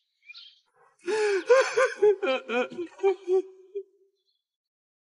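A young man cries out loudly.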